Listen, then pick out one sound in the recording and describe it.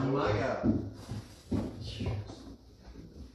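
A man speaks into a microphone over loudspeakers in an echoing room.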